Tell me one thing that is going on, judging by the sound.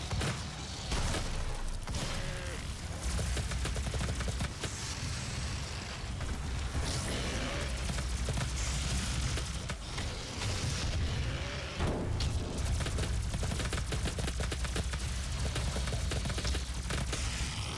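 Monsters roar and growl.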